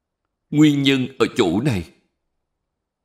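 An elderly man speaks calmly and closely into a microphone.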